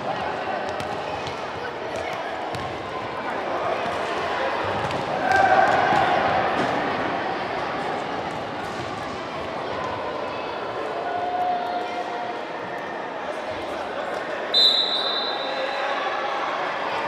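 A ball thuds as it is kicked and bounces.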